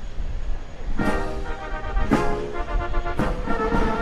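A brass band starts playing a loud march.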